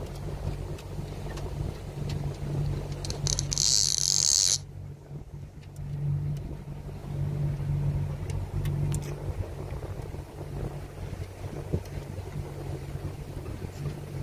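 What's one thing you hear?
Water laps gently against a boat's hull.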